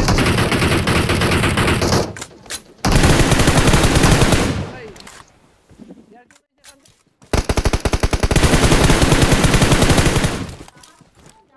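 Automatic rifle fire rattles in long, rapid bursts.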